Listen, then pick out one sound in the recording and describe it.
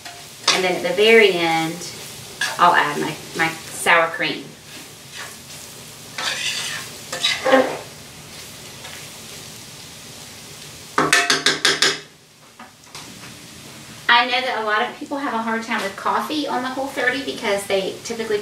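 A woman talks calmly and clearly close by.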